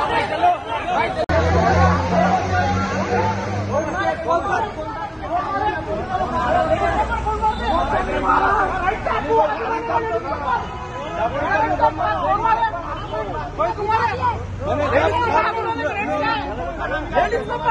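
A crowd of men shouts and argues loudly outdoors.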